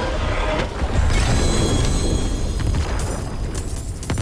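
A game fanfare chimes as a stage is completed.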